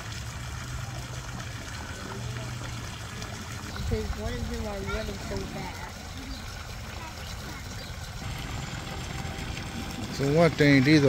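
Water splashes steadily into a pool.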